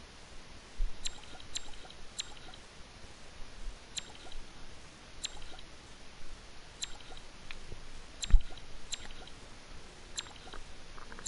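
Short electronic ticks sound each time a game menu selection moves.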